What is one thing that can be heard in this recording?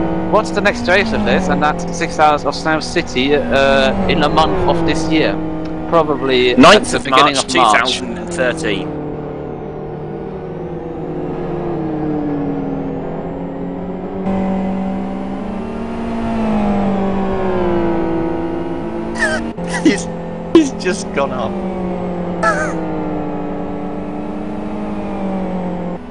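A racing car engine roars and shifts through the gears.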